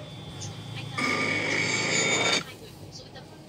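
A television switches on and hisses with loud static.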